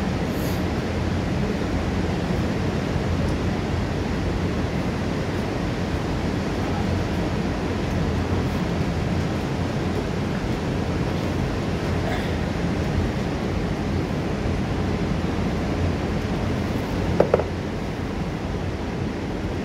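A waterfall roars steadily, crashing into a rocky pool.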